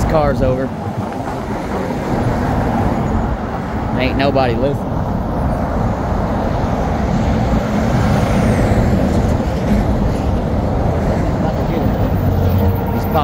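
Heavy traffic roars past close by on a highway.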